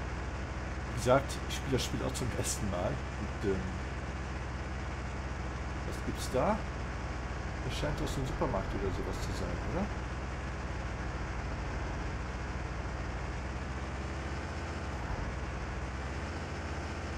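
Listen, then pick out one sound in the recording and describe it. A truck engine hums steadily as it drives along.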